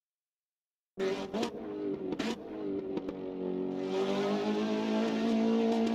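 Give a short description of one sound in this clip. A racing car engine roars and climbs steadily in pitch as it speeds up.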